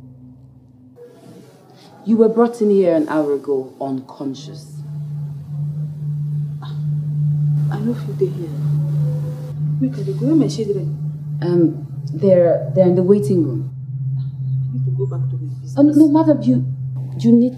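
A woman speaks in a distressed voice.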